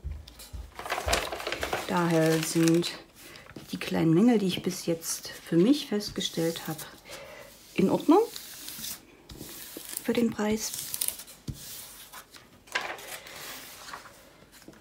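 Paper rustles and crinkles as it is turned over and smoothed flat by hand.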